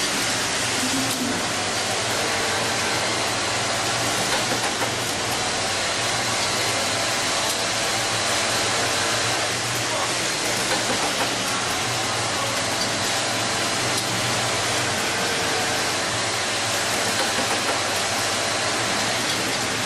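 An automatic sewing machine hums and stitches steadily.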